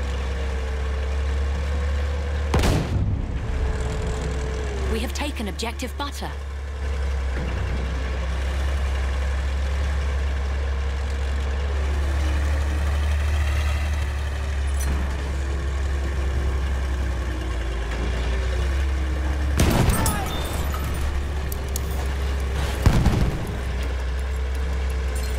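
A heavy tank engine rumbles and clanks steadily.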